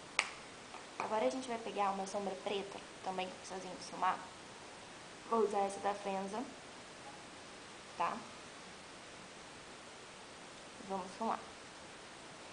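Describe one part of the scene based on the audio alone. A young woman talks calmly, close by.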